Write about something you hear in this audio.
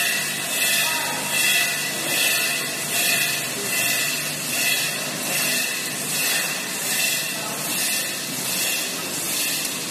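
Packing machinery hums and clatters steadily in a large room.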